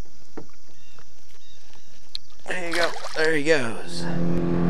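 Water splashes as a fish is released.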